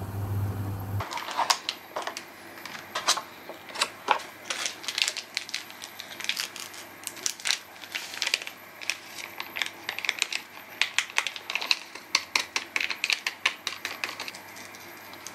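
A plastic packet crinkles and rustles close by.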